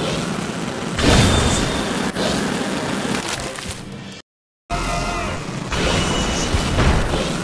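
Fiery blasts and attack effects crackle rapidly in a game battle.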